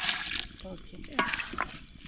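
A wooden spoon scrapes and stirs food in a metal pot.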